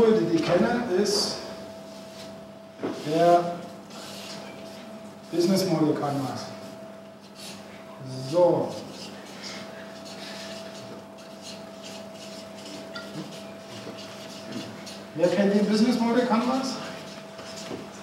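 A man speaks to an audience in short bursts.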